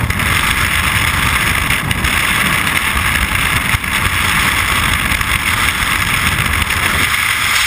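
Strong wind roars loudly and steadily past a microphone in free fall.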